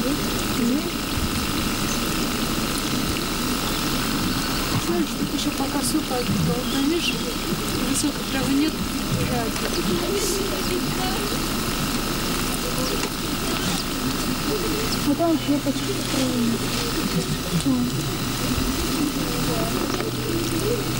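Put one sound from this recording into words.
Children talk nearby.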